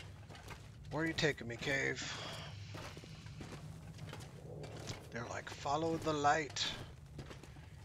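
A man speaks briefly and casually into a close microphone.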